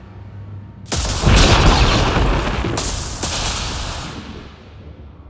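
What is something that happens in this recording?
Lightning cracks and crackles loudly.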